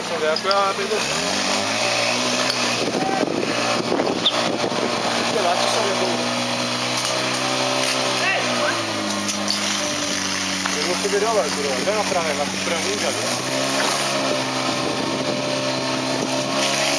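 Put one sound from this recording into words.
A pump engine drones loudly, revving up and down.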